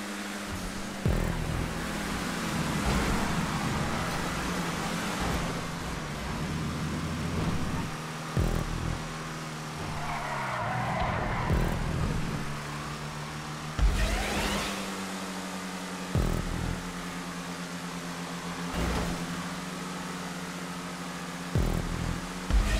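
A race car engine roars steadily, rising and falling in pitch as it shifts gears.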